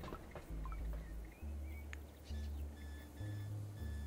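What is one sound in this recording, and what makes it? Soft game interface clicks sound as a menu opens.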